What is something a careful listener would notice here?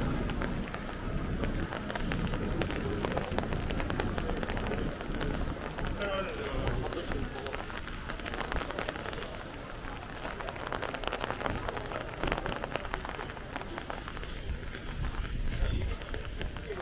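Rain patters steadily on wet pavement outdoors.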